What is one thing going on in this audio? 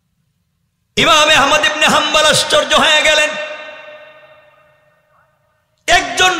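A young man chants loudly and melodically into a microphone, with a long echoing fade.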